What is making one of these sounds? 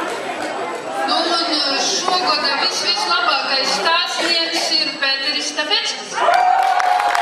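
A woman speaks into a microphone over a loudspeaker.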